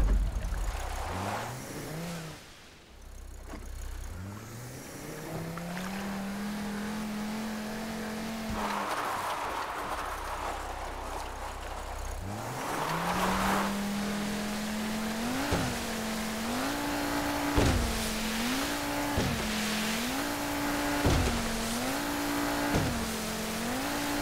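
A motorboat engine revs up and down.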